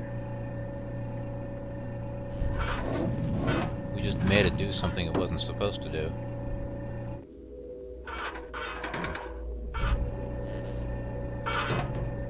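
A low mechanical hum drones steadily.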